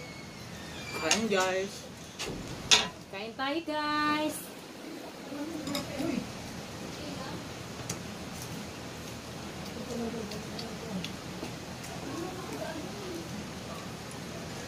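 A woman speaks casually nearby.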